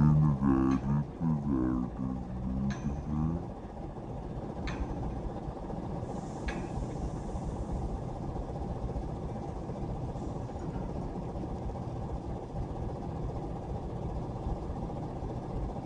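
A heavy diesel truck rumbles past, hauling a heavy load on a multi-axle trailer.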